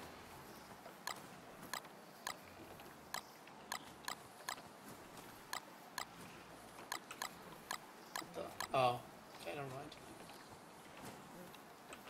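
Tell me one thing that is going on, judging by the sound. Light footsteps patter steadily on the ground.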